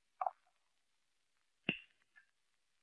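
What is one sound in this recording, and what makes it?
A wall switch clicks.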